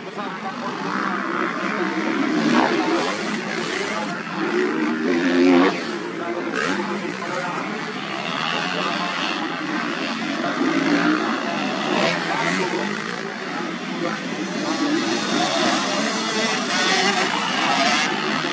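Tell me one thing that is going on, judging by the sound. Dirt bike engines rev and roar loudly, rising and falling in pitch.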